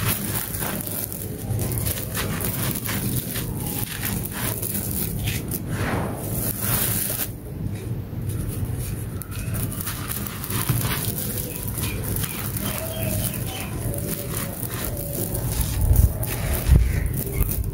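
Hands crumble clumps of dry, gritty dirt with a crunch.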